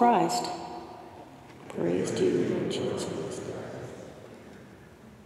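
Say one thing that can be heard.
A man chants aloud close by, echoing in a large reverberant hall.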